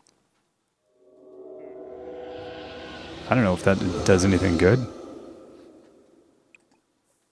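An eerie, shimmering ghostly tone swells up and slowly fades.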